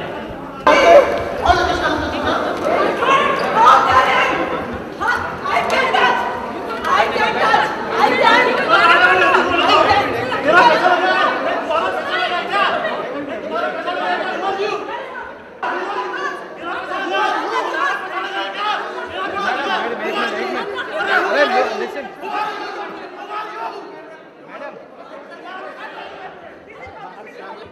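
A crowd murmurs and talks all around in an echoing room.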